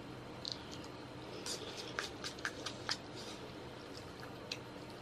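A young woman chews and smacks her lips close to a microphone.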